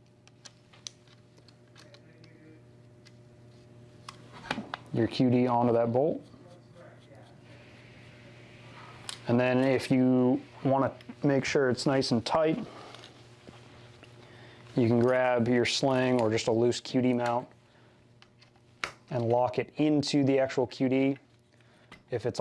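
Metal parts click and tap as a rifle is handled.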